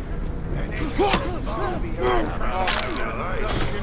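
A blade stabs into flesh with heavy thuds.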